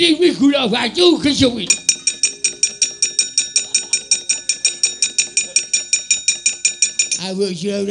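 A man speaks in a dramatic, sing-song voice nearby.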